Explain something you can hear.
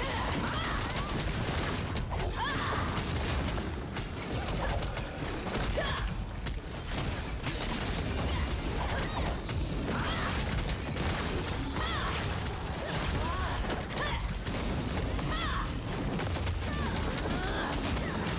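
Magic spells crackle and blast over and over.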